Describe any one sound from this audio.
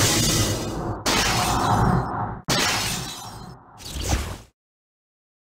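A magical portal swirls with a loud rushing whoosh.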